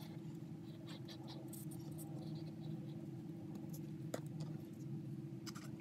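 Paper rustles softly as it is handled.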